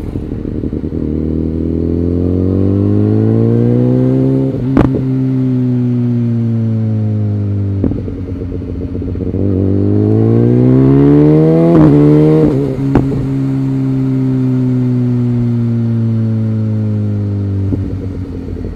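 A motorcycle engine revs up and down close by.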